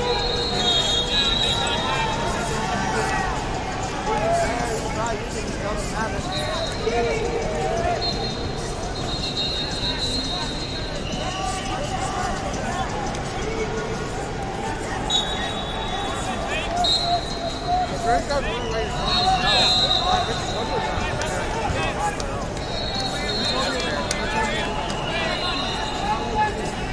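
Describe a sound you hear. A crowd of people chatters throughout a large echoing hall.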